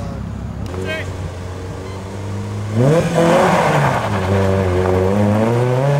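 A second rally car engine growls as it approaches.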